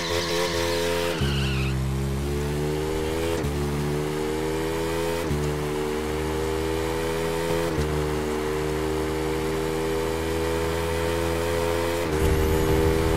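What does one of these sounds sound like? A motorcycle engine revs high and shifts up through the gears.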